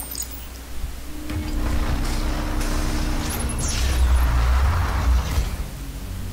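A low mechanical rumble hums steadily.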